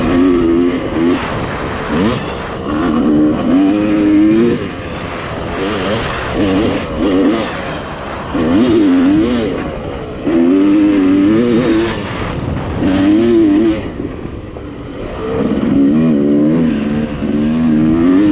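Tyres crunch over a dirt trail.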